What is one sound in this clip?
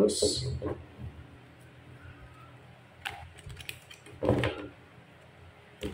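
Playing cards riffle and flick as they are shuffled by hand.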